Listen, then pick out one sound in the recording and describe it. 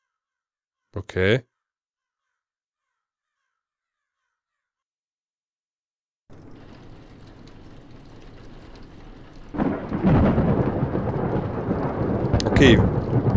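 A man speaks briefly and close to a microphone.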